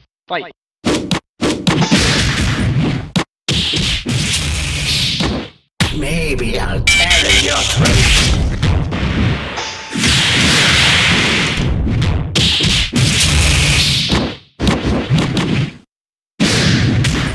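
Punches and slashes land with sharp, heavy hits in quick bursts.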